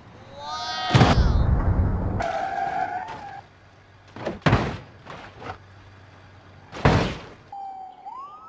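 A car crashes into another vehicle with a loud crunch of metal.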